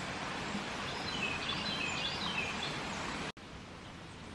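A shallow stream trickles and murmurs over stones.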